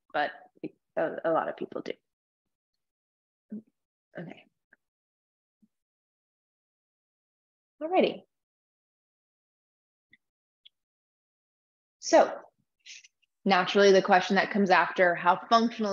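A woman speaks calmly through a microphone on an online call, with pauses.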